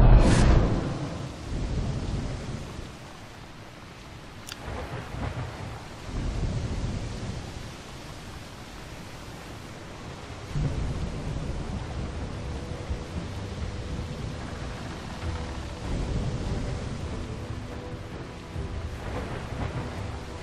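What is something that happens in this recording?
Rain falls steadily over a stormy sea.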